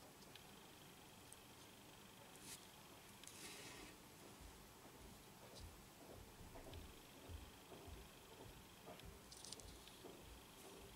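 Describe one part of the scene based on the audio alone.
Small tools tap and click faintly against a plastic model.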